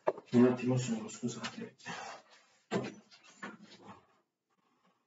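A man speaks close by, briefly and casually.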